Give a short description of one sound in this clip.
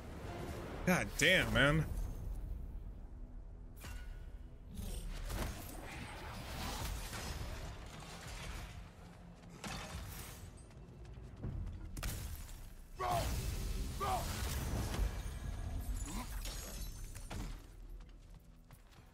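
Heavy footsteps thud on stone.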